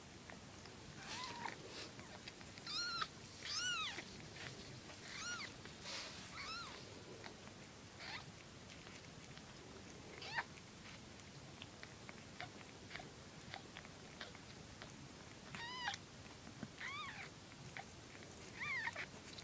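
Tiny kittens mew in high, thin squeaks close by.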